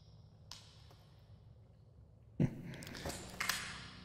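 A flashlight clicks on.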